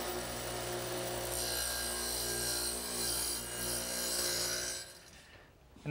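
A circular saw whines as it cuts through wood.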